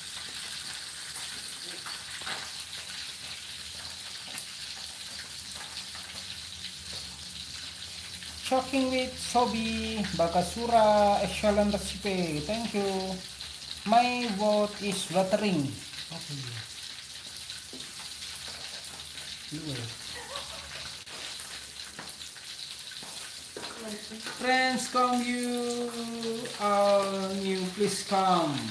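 Oil sizzles steadily in a frying pan.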